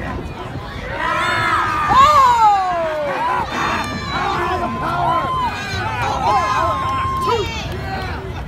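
A crowd cheers and yells excitedly.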